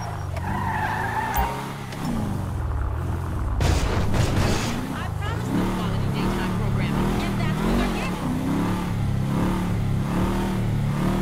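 A car engine hums steadily as the car drives slowly.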